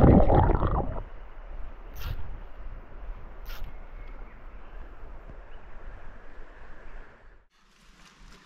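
A river flows gently outdoors.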